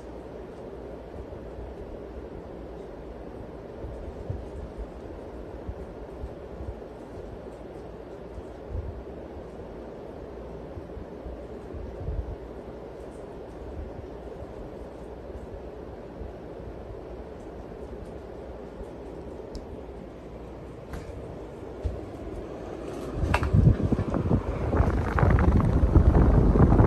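A ceiling fan whirs steadily.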